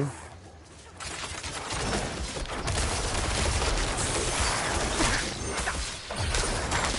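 Swords slash and clash in a fast, noisy fight.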